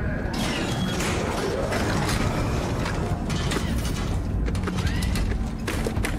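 A heavy mechanical rig whirs and clanks shut.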